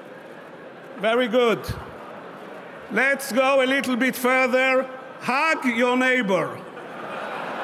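An elderly man speaks with animation through a microphone in a large hall.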